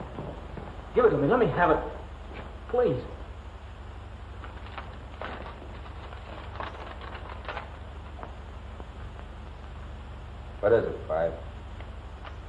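A man speaks gruffly and briefly.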